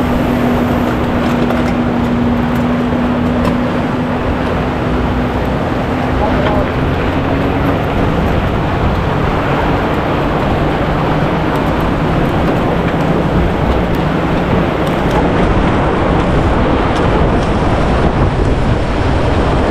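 Wind rushes loudly past a moving rider.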